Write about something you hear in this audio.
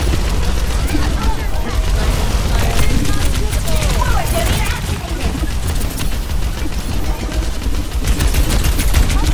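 Futuristic guns fire in rapid bursts.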